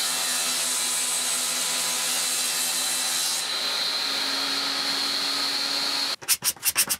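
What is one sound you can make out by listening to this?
A table saw blade whines steadily as it spins.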